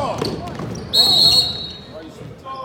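A whistle blows shrilly in a large echoing hall.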